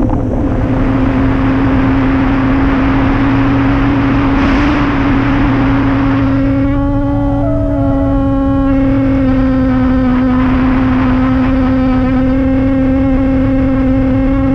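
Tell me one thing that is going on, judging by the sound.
Wind roars steadily past outdoors.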